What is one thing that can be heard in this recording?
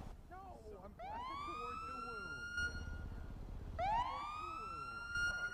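A police siren gives short rising whoops close by.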